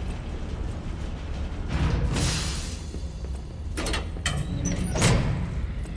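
A metal lift gate rattles and clanks open.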